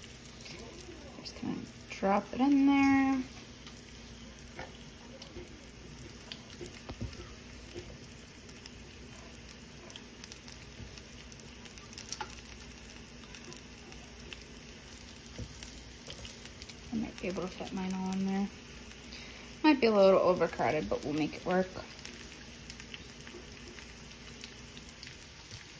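Slices of raw meat slap softly onto a pan.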